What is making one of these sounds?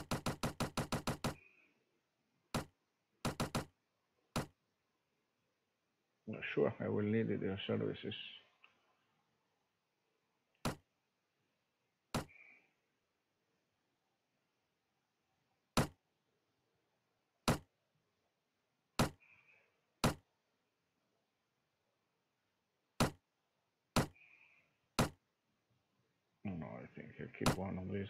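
Short interface clicks sound as menu items are picked.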